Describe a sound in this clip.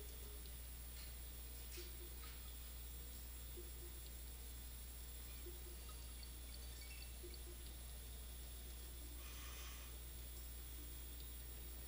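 Soft, quiet game music plays with gentle repeating notes.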